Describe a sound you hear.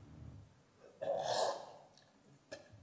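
A man sips a drink loudly from a cup.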